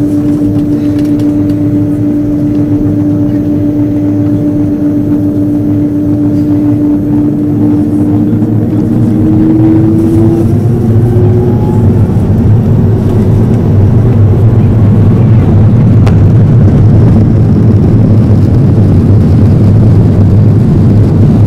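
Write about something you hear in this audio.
Jet engines hum steadily, then rise in pitch and swell to a loud roar.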